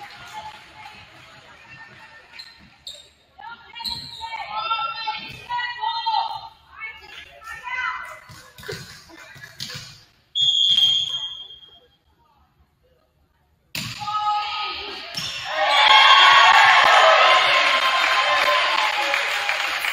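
A volleyball is struck with a hard smack.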